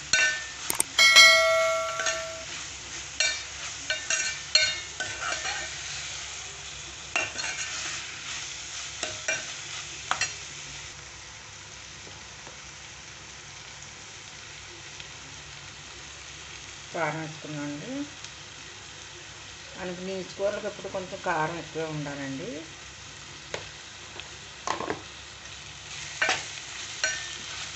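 A metal spoon scrapes and clinks against a metal pan.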